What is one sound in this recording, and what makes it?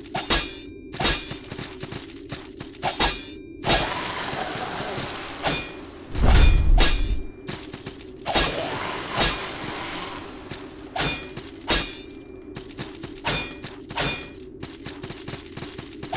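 Sword blows clash and strike in a fight.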